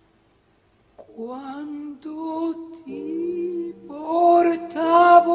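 A woman sings a slow, wavering melody.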